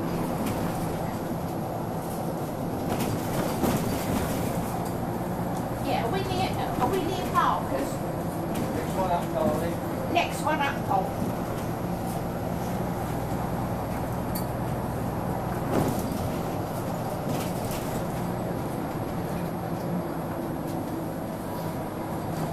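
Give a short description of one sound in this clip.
A bus rattles and creaks as it rolls over the road.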